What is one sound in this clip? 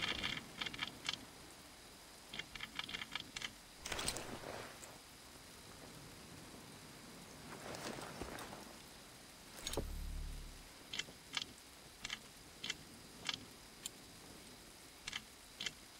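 Small metal clicks tick rapidly inside a lock as it is picked.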